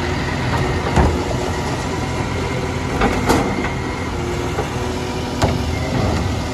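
A wheelie bin bangs and clatters as it is emptied into a truck.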